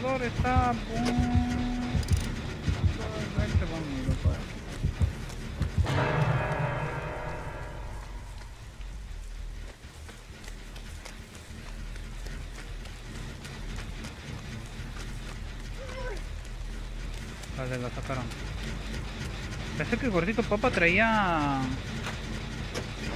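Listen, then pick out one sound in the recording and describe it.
A generator engine rattles and clanks steadily.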